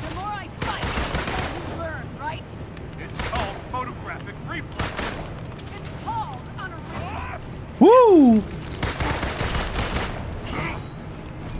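Energy blasts whoosh and clang against a shield.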